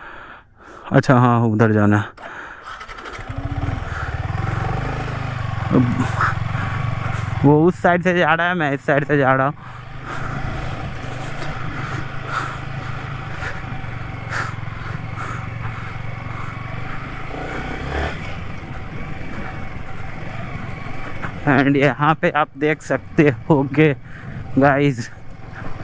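A motorcycle engine revs up and down in short bursts.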